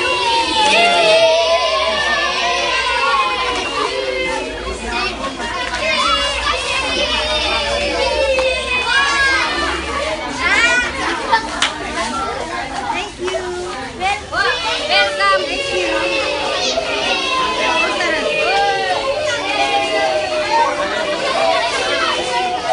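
A crowd of children shouts and cheers close by.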